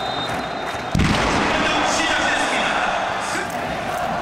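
Fireworks shoot up with a loud bang and crackle.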